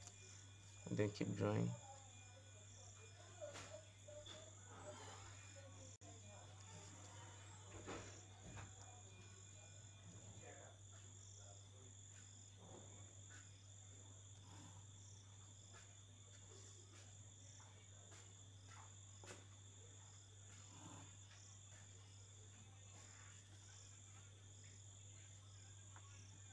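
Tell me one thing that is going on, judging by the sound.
A plastic ruler slides and taps on paper.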